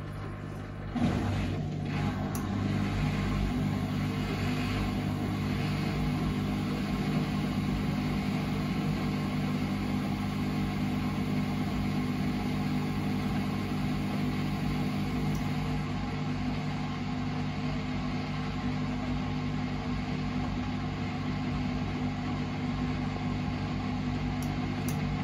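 Laundry tumbles and swishes inside a turning washing machine drum.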